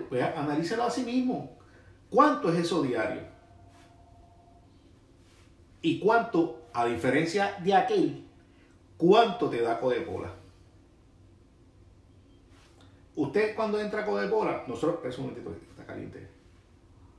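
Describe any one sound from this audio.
A middle-aged man talks animatedly close to a microphone, with pauses.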